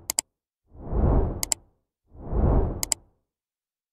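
A mouse button clicks twice in quick succession.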